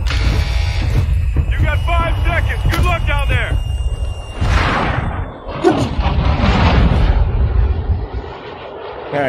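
An aircraft engine drones with a deep rumble.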